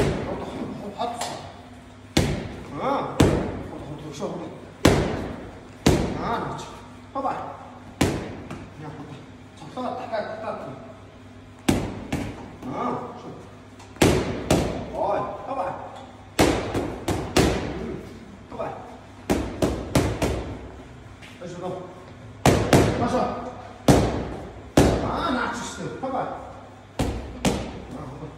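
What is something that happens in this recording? Boxing gloves smack sharply against punch mitts in quick bursts.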